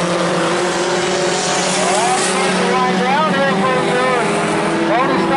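A race car engine roars loudly and revs up and down as it speeds past.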